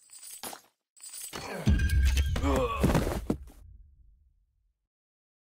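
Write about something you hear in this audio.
A tower crumbles with a deep rumble.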